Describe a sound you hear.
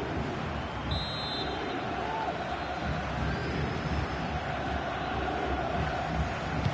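A large crowd cheers and chants steadily in a stadium.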